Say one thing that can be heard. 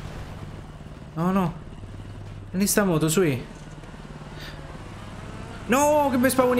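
A motorbike engine idles with a low, steady hum.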